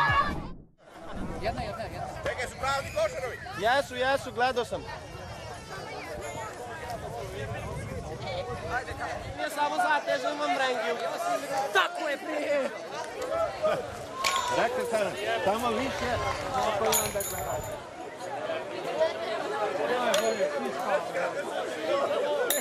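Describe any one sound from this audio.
A crowd of people cheer and shout outdoors.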